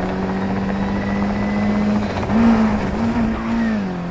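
Tyres screech as a car drifts through a corner.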